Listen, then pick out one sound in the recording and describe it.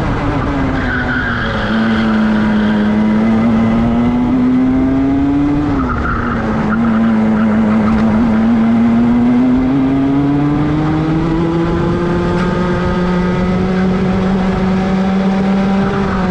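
A kart engine buzzes loudly up close, its pitch rising and falling as it speeds up and slows down.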